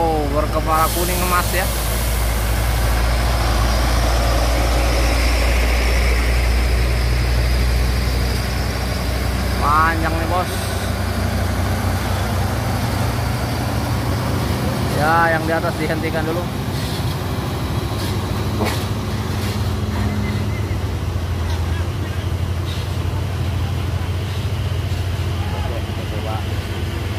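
A heavy truck engine rumbles low and steady as the truck slowly drives past.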